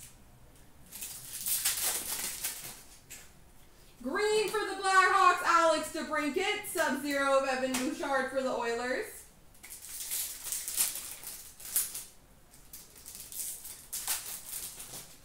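A foil card pack crinkles and rustles in hands.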